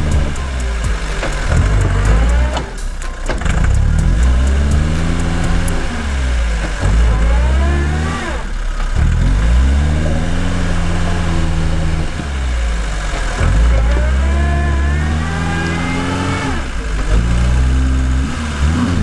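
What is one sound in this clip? Tyres churn and squelch through thick mud.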